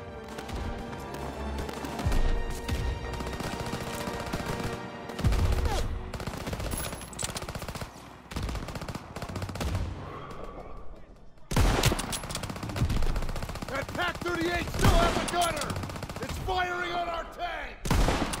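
Gunshots crack and boom in a battle nearby.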